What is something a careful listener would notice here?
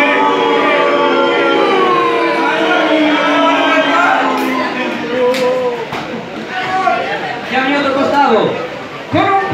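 A crowd of spectators cheers and chants loudly in an echoing hall.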